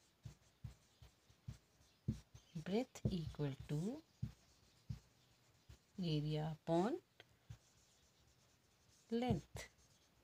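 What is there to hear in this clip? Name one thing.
A marker scratches and taps on a board, close by.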